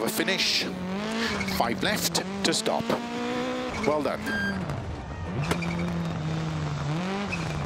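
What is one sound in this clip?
A rally car engine roars and revs up and down.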